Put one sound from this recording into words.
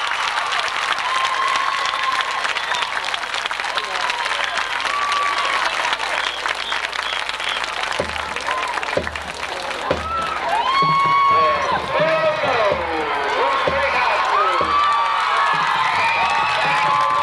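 A marching band plays brass outdoors in a stadium.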